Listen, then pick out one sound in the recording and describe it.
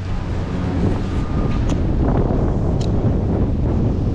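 A rope scrapes and rustles against tree bark.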